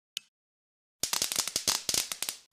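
Bubble wrap pops in quick bursts.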